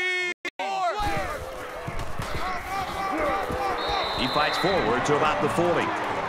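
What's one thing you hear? Football players crash together in a tackle.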